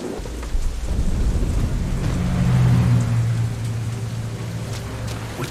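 Thunder rumbles low and loud, then slowly fades.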